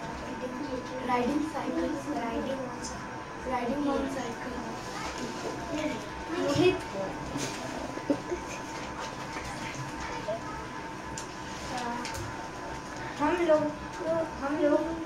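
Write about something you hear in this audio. A boy speaks slowly and hesitantly nearby.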